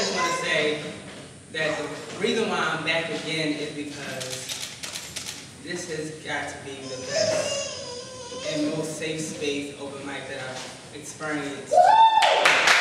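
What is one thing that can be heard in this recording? A young man speaks with animation into a microphone over loudspeakers in a hall.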